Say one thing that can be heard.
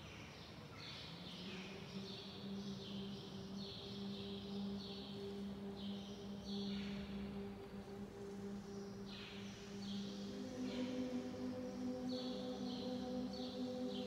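A mixed choir sings slow sustained chords in a large echoing stone hall.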